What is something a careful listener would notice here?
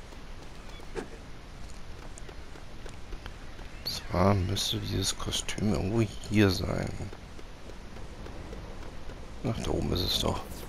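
Footsteps patter on wooden boards.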